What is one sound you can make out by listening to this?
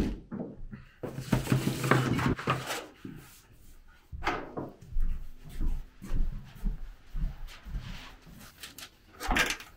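A thin metal sheet wobbles and rumbles as it is lifted.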